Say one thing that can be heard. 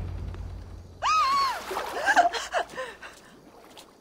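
A young woman cries out in pain.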